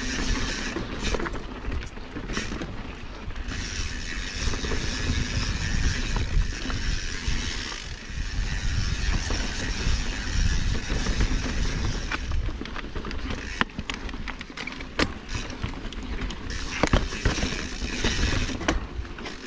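A bicycle clatters sharply over bumps in the rocks.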